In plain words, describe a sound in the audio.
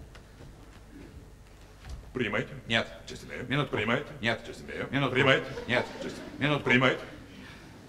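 An older man speaks theatrically in a large hall.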